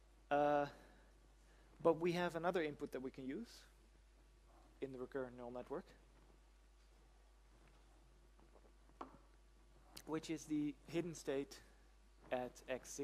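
A man lectures calmly with pauses, heard through a microphone.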